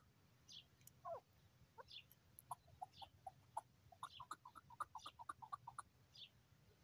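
A caged bird sings loud, rapid chirps and trills close by.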